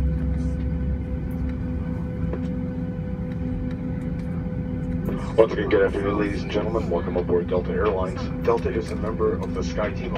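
Aircraft wheels rumble over the taxiway.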